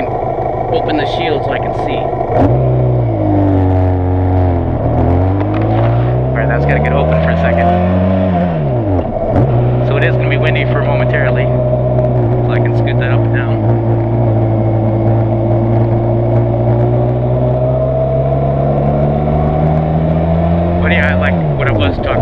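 A motorcycle engine hums and revs up and down as it rides.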